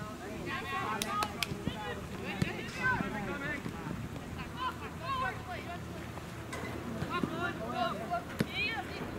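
A soccer ball is kicked with dull thumps.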